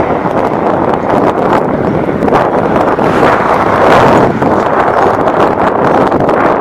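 Wind blows loudly and steadily outdoors.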